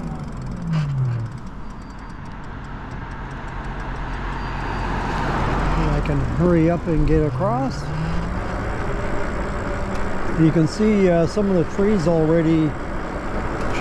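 An electric bike motor hums steadily.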